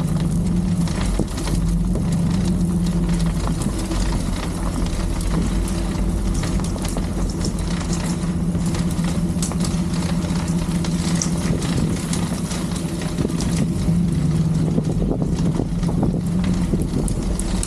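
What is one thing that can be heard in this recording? Tyres roll and crackle over wet slush.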